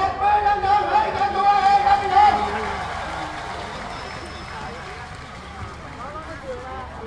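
A crowd murmurs and calls out in the open air.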